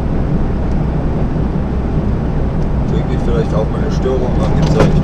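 A heavy diesel truck engine drones while cruising on a motorway, heard from inside the cab.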